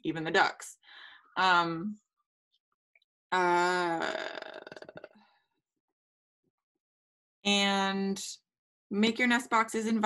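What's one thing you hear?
A woman speaks with animation over an online call.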